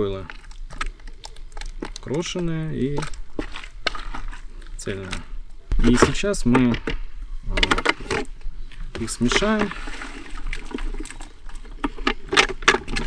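Wet fishing bait slaps and plops into a plastic tray.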